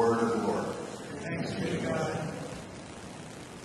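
An elderly man speaks calmly through a microphone in an echoing room.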